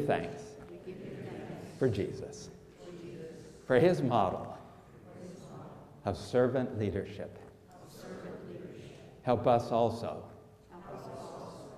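A man speaks calmly, pausing between phrases.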